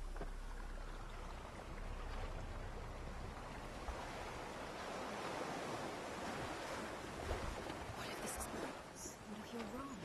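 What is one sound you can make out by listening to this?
Waves wash against a rocky shore.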